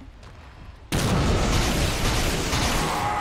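A crackling lightning blast strikes with a sudden loud burst.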